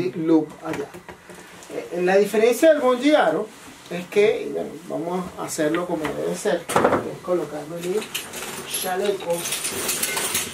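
A middle-aged man talks calmly and explains, close by.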